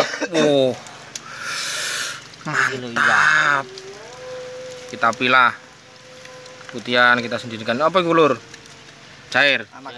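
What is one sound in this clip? Wet fish slap and rustle as hands rinse them in water.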